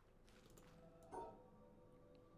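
A short electronic chime rings.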